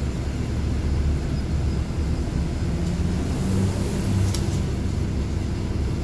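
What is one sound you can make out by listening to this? A small bus drives past close by.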